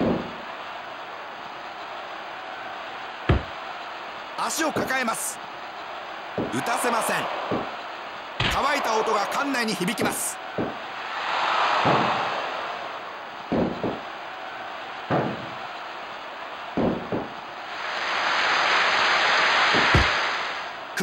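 A crowd cheers and roars in a large arena, swelling now and then.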